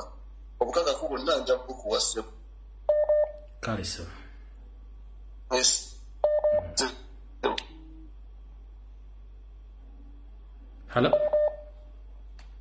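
A man speaks in short bursts with pauses, heard through a microphone.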